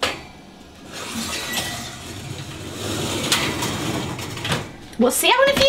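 A glass dish scrapes and clinks on a metal oven rack.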